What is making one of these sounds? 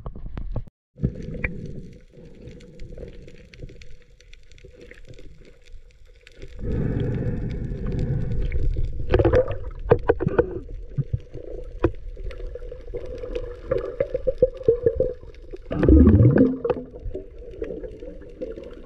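Water rumbles and bubbles, muffled, underwater.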